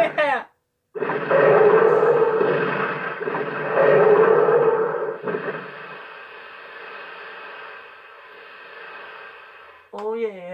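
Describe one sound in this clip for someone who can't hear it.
Flames roar and crackle in a burst of fire.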